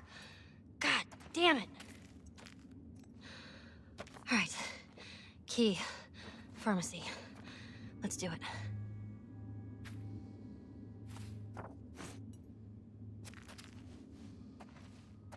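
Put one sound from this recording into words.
Footsteps scuff slowly on a gritty floor.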